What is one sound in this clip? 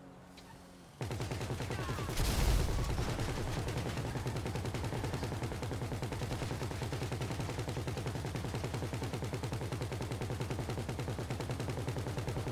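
A heavy machine gun fires in rapid, continuous bursts.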